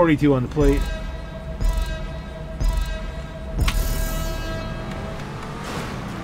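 A countdown beeps three times, then a higher tone sounds.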